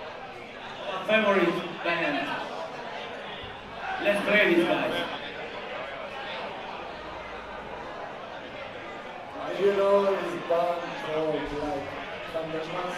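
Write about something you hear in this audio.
A man in the crowd nearby sings along loudly.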